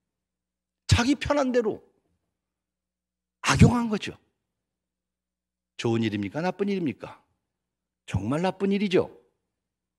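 A middle-aged man speaks emphatically into a microphone in short phrases with pauses.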